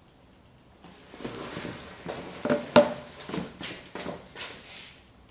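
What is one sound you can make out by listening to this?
A leather sofa creaks and rustles as a man gets up from it.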